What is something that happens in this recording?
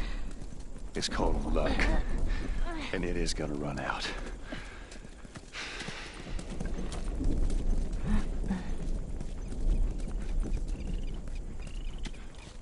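Footsteps run over rough ground.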